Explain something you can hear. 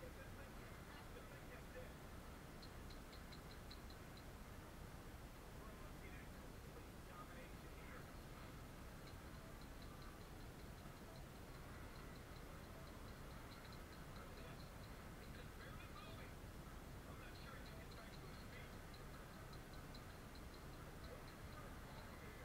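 A crowd roars and cheers, heard through a television speaker.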